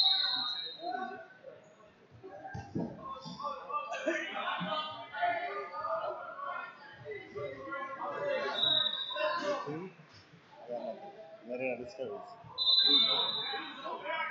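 Men shout and call out encouragement in a large echoing gym.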